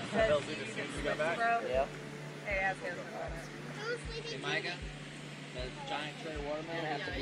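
Young people talk with animation nearby, outdoors.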